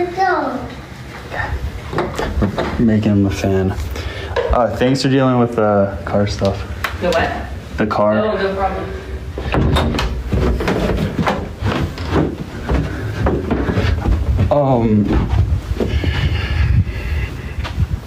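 A young man talks casually and close to a phone microphone.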